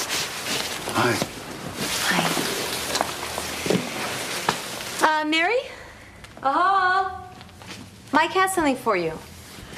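A woman talks with excitement nearby.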